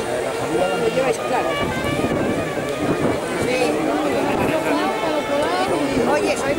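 A crowd of people shouts and chatters close by, outdoors.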